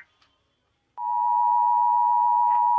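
A steady, piercing two-tone alert tone sounds through a small speaker.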